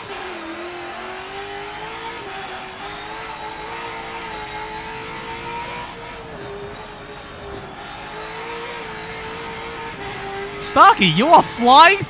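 A racing car engine drones steadily, its pitch rising and dipping with gear changes.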